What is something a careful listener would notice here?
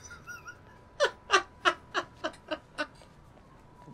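A man laughs loudly in bursts close to a microphone.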